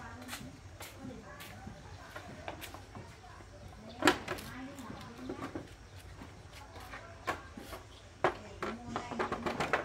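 A plastic motorbike panel clatters and knocks as it is handled.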